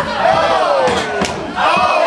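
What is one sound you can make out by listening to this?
A wrestler's kick smacks against another wrestler.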